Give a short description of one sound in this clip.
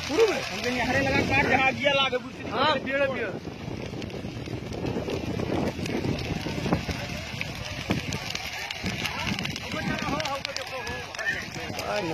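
Dry grass crackles and pops as a fire burns.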